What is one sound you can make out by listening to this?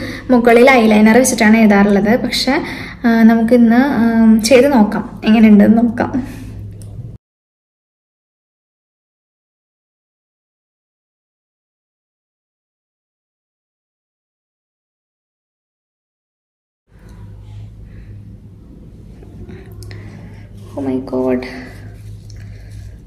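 A young woman talks to the listener calmly and closely into a microphone.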